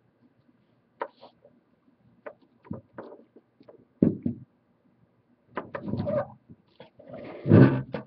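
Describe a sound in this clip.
A plastic-cased sealed lead-acid battery knocks and scrapes on a table as it is handled.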